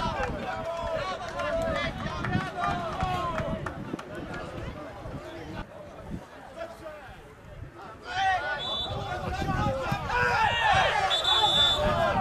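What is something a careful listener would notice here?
Men shout and call out across an open outdoor field.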